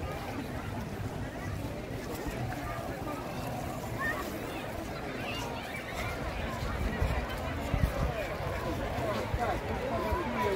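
A crowd of people chatters and shouts all around, outdoors.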